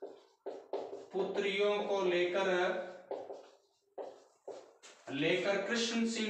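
A man speaks calmly and clearly, as if explaining to a class.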